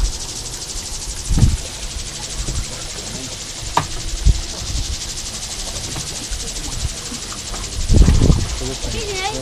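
Water laps against the hull of a small boat.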